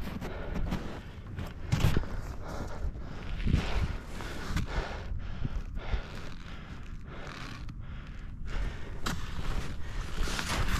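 Wind rushes and buffets outdoors.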